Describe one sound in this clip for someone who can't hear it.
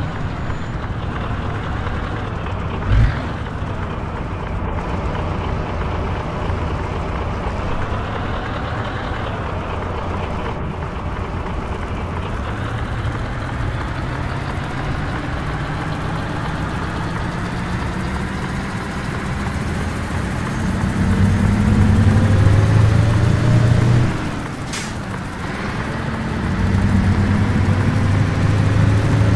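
A truck engine rumbles steadily and rises in pitch as it speeds up.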